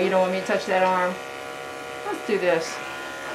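Electric clippers hum steadily.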